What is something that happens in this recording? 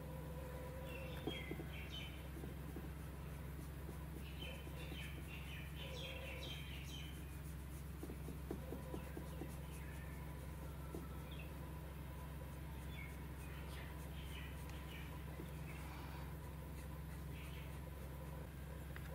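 A small brush softly brushes and dabs on paper.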